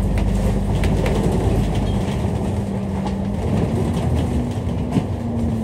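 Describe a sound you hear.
A bus engine hums steadily as it drives.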